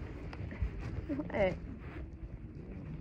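A horse whinnies briefly.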